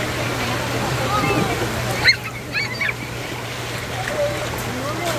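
Water gushes and splashes steadily out of a slide.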